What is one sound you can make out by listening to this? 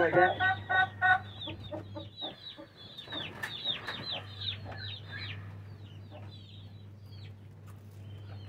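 Small birds chirp rapidly nearby.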